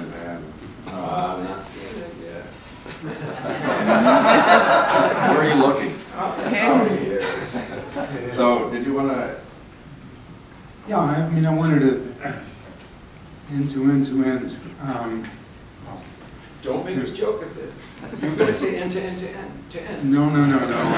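A man speaks through a microphone in an echoing hall, with animation.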